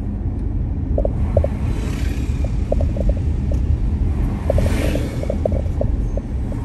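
A bus rumbles past close by.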